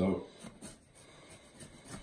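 A knife slices through a pepper.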